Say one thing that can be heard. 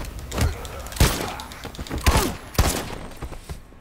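Gunshots bang sharply several times.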